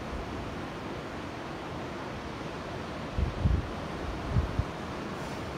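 Sea waves break and wash nearby.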